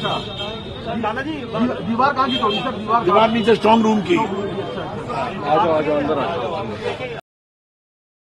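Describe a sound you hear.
An elderly man speaks into close microphones.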